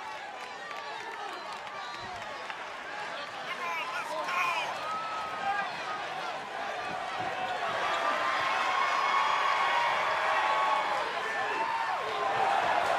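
A large crowd cheers and whistles in a big echoing arena, growing louder.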